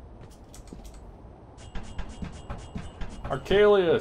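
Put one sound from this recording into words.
Hands clank on a metal ladder rung by rung.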